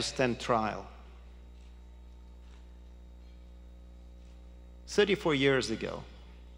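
A middle-aged man speaks calmly into a microphone over a loudspeaker, with pauses.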